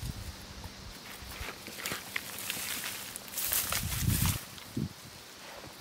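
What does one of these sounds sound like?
Hands rustle through dry leaves and soil.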